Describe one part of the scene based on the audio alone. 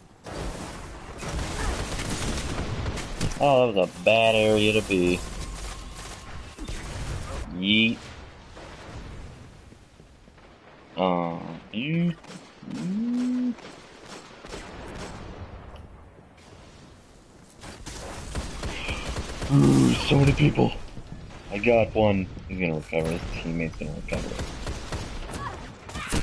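Game gunshots fire in rapid bursts.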